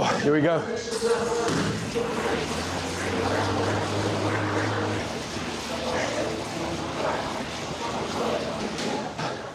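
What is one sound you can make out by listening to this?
An exercise bike's fan whooshes steadily as it spins.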